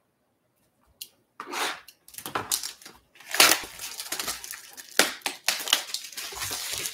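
Plastic wrap crinkles and tears close by.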